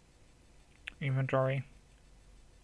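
A short electronic menu chime sounds.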